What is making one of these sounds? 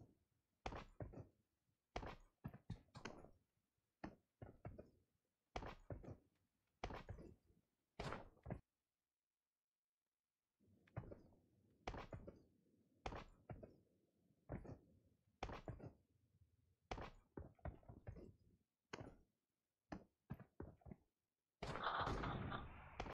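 Footsteps thud quickly over snowy ground.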